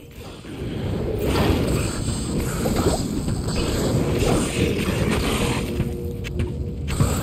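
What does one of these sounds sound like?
Blades slash and strike in a fast fight.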